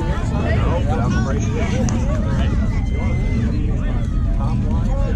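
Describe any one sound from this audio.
Young players shout and chatter outdoors across an open field.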